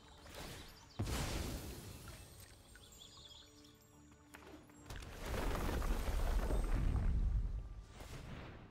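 Magical whooshing and chiming effects sound as cards are played.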